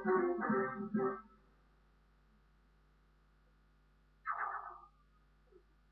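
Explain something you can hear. A video game plays short bursts of sound through a small television speaker.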